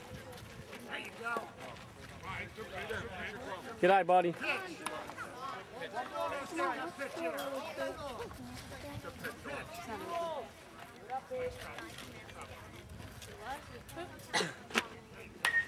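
A crowd of adults and children chatters and calls out nearby outdoors.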